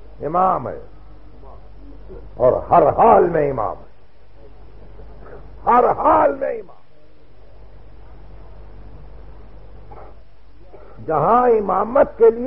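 An elderly man speaks in short bursts with long pauses.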